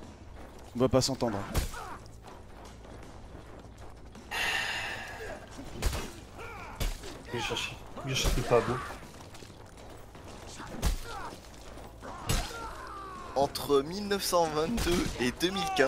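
Swords clang and strike in a fight.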